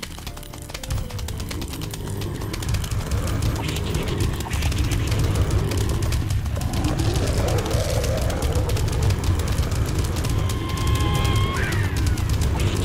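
Rapid popping shots fire over and over in a dense rattle.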